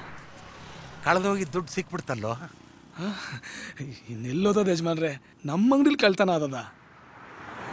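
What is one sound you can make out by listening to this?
A younger man speaks in reply.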